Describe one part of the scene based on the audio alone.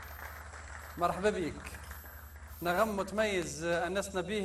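A man speaks clearly into a microphone with animation.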